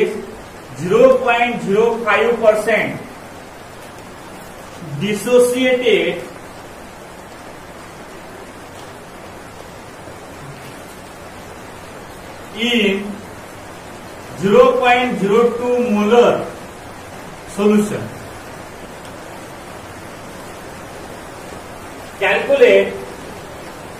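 A man speaks calmly in short phrases, with pauses.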